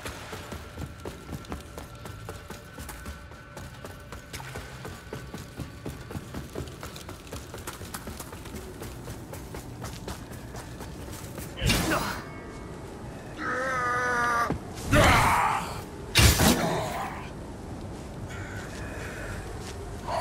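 Footsteps patter steadily at a run.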